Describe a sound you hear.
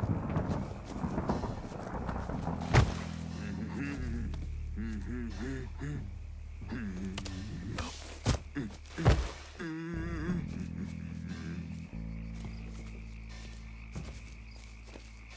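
Footsteps rustle softly through wet grass.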